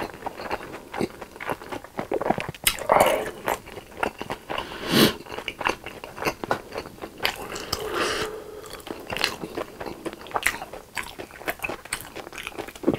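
A young man chews food loudly and wetly close to a microphone.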